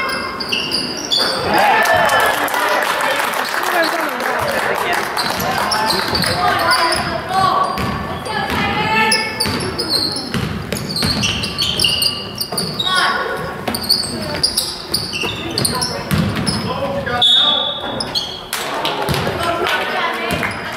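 Young players and spectators shout and call out in the echoing gym.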